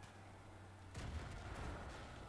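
A loud explosion bursts and roars.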